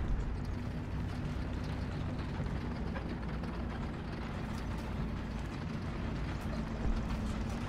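Tank tracks clank and grind as the tank moves.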